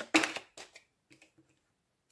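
Cards are laid down onto a table with soft taps.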